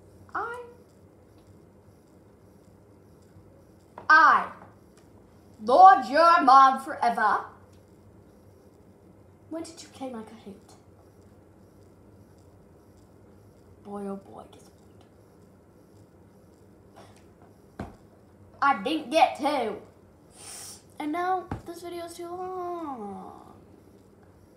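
A young girl talks close by, in short bursts with pauses.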